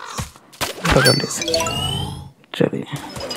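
A playful electronic whoosh and chime sound as a creature is caught.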